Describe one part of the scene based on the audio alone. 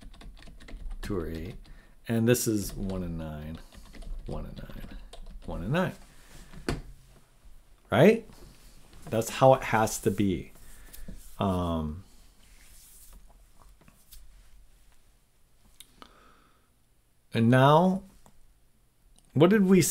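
A man talks thoughtfully into a close microphone, with pauses.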